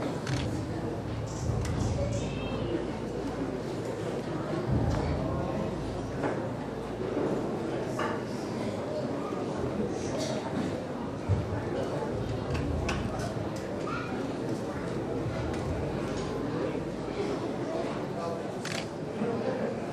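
Wooden clicks and knocks sound now and then.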